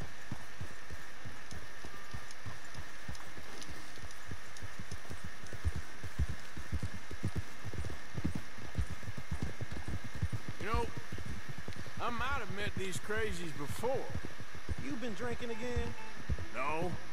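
Horse hooves thud steadily on soft ground.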